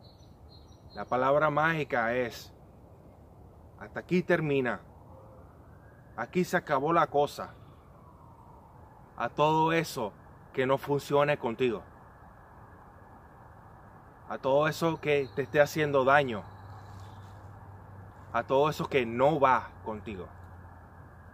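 A man speaks calmly and closely to the listener, in short phrases with pauses.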